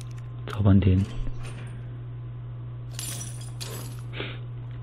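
Bolt cutters snap through a metal chain with a sharp clank.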